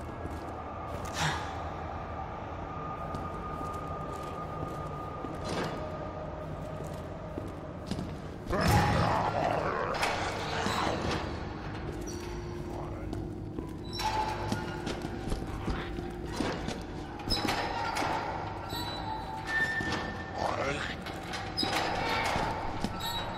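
Creatures groan and snarl in an echoing space.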